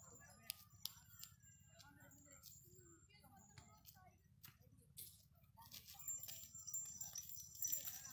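A goat's hooves tap on a concrete path.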